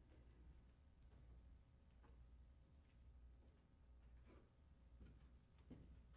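Light knocks and rustles come from a piano being readied.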